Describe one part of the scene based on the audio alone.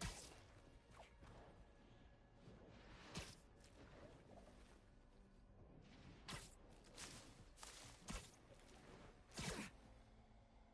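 Sharp snapping thwips sound as web lines shoot out.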